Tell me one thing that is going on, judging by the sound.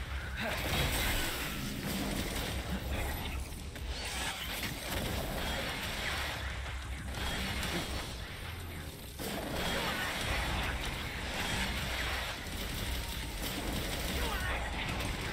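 Blades slash and clang in quick, sharp hits.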